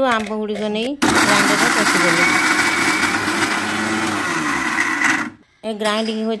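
A blender whirs loudly as it grinds.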